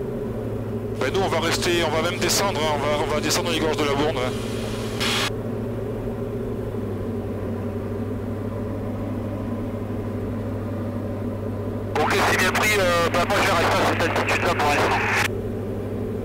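A man talks through a headset intercom over the engine noise.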